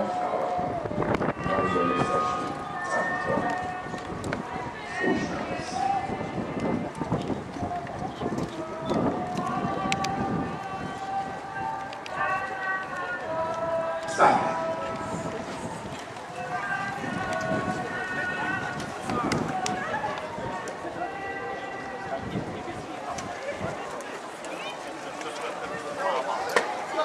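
A brass band plays a lively march outdoors.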